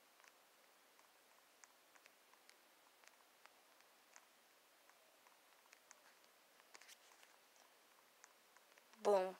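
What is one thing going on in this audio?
A video game character's footsteps patter.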